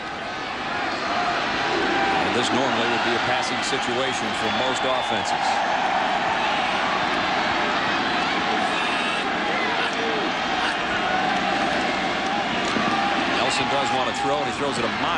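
A large crowd cheers and roars in a big outdoor stadium.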